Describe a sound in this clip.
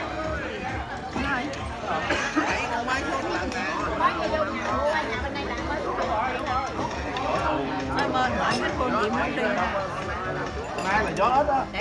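Several women talk over one another with animation, close by.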